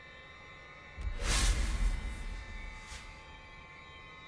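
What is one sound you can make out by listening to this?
A loud blast booms and hisses, then fades.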